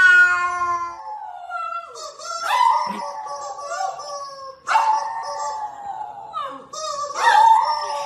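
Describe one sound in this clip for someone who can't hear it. A small dog howls in long, wavering cries.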